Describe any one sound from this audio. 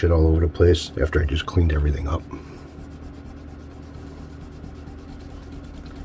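A cloth rubs quickly back and forth on wood.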